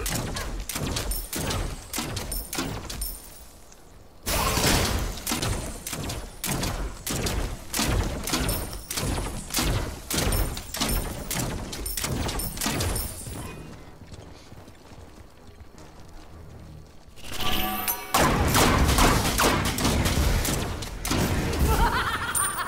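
Rapid game spell blasts and hits crackle and thud.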